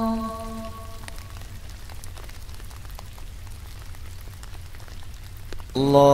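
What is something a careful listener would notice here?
A man chants slowly in a long, drawn-out voice.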